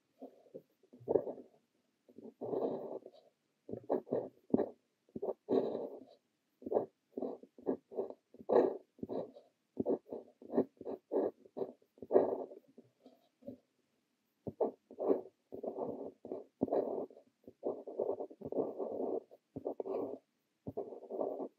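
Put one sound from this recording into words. A fountain pen nib scratches softly across paper.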